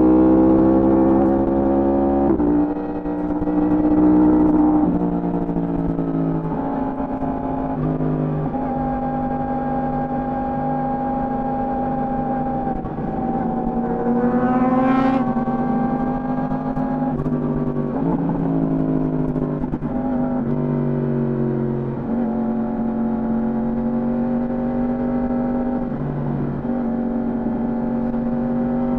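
A motorcycle engine roars steadily, its pitch stepping up and down as the rider shifts gears.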